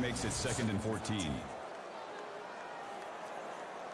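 Football players thud together in a tackle.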